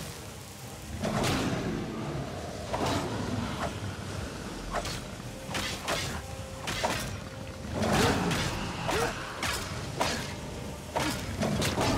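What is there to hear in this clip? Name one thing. A dragon roars and growls up close.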